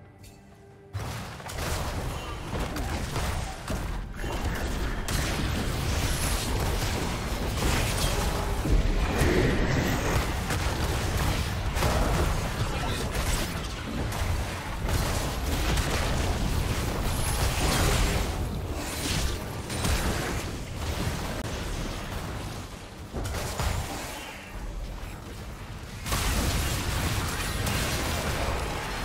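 Game spell effects whoosh, crackle and explode in a busy fight.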